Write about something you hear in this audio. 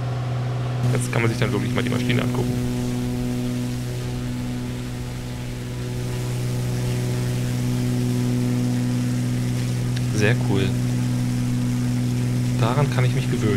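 A man talks into a microphone in short bursts.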